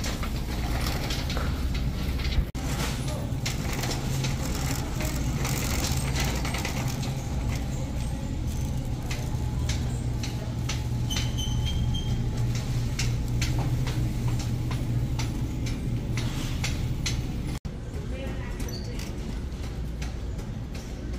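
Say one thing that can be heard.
A shopping cart rolls along a hard floor, its wheels rattling.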